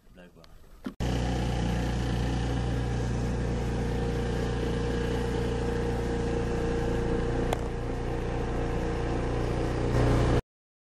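A scooter engine idles with a steady low hum.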